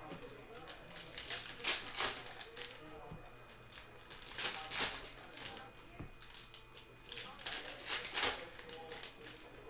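Foil wrappers crinkle and tear in bursts close by.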